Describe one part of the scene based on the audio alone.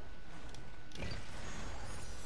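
A game character lands from a jump with a heavy thud.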